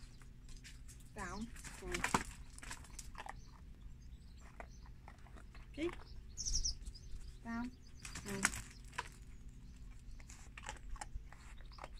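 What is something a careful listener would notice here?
A dog's paws scuff and crunch on gravel nearby.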